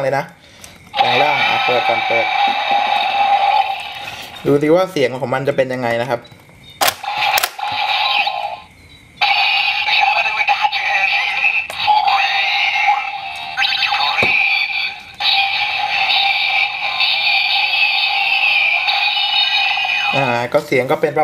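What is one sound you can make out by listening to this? A toy belt plays loud electronic sound effects and music.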